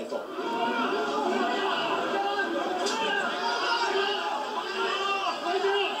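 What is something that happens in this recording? A crowd of men and women shout over one another close by.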